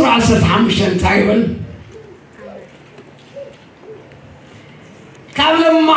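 An elderly man speaks slowly and solemnly into a microphone in a large echoing hall.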